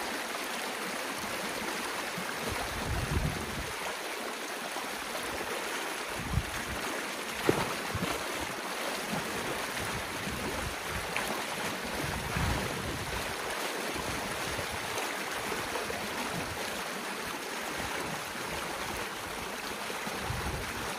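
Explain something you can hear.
Water rushes and gurgles steadily through a shallow stream.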